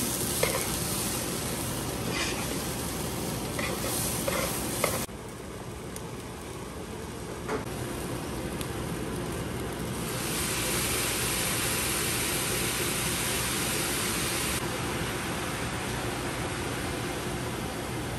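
Food sizzles in hot pans.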